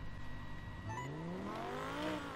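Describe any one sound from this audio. A sports car engine revs up with a rising roar.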